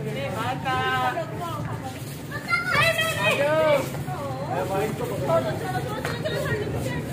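Children shout and squeal excitedly outdoors.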